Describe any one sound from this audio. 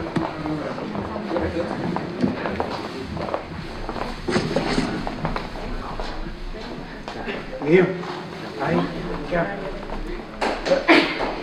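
A group of men and women chatter and murmur nearby in an indoor room.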